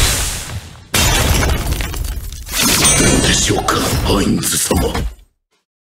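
Heavy metal armour clanks as a large halberd swings.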